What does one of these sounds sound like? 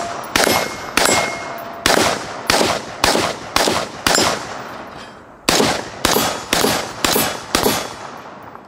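A rifle fires rapid shots outdoors, each crack echoing off a hillside.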